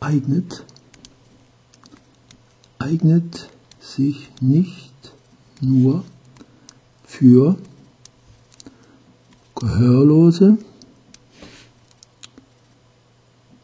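A stylus taps and scratches lightly on a touchscreen.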